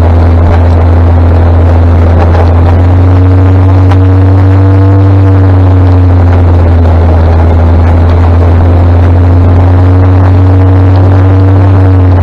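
A tractor engine rumbles ahead.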